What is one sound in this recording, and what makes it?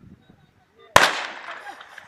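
A starting pistol fires once with a sharp crack that echoes outdoors.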